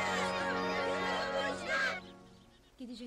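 A calf bleats loudly.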